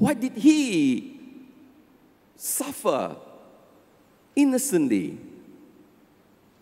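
An elderly man speaks emphatically into a microphone in a large echoing hall.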